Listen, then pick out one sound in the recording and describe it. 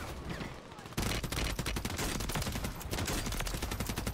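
Gunfire rattles rapidly from the game.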